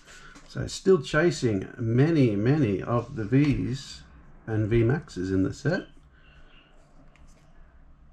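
Cards slide and flick against each other.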